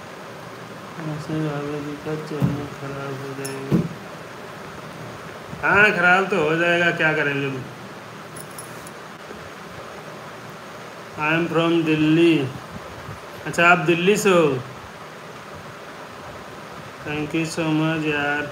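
A young man talks close to a phone microphone.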